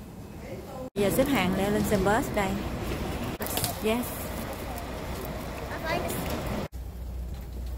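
Several adults talk close by.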